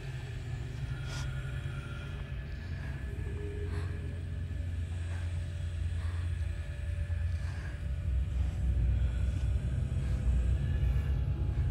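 Footsteps creak softly on wooden floorboards.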